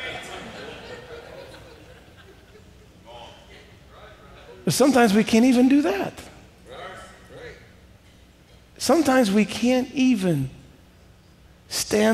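A middle-aged man speaks with animation through a headset microphone in an echoing hall.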